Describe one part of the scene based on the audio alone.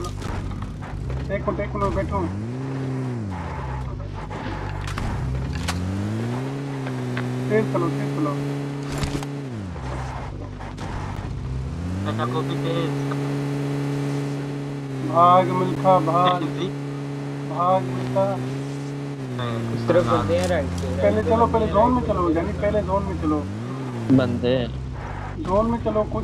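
A vehicle engine hums and revs up and down.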